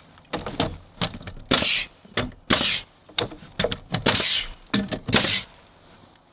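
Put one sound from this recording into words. A nail gun fires sharp bursts into wood.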